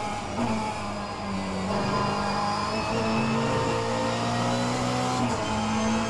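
A racing car engine roars loudly, its pitch rising and dropping with gear changes.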